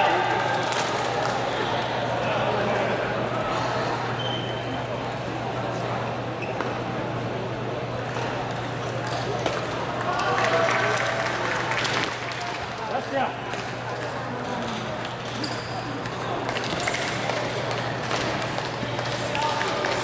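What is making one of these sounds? Voices of several people murmur in a large echoing hall.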